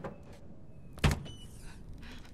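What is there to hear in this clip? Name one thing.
A door bangs open.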